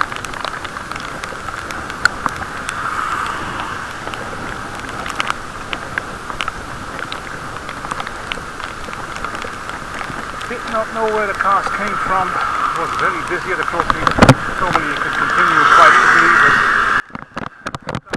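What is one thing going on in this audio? Raindrops tap close by.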